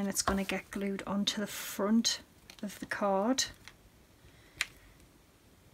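A plastic sheet crinkles as hands handle it.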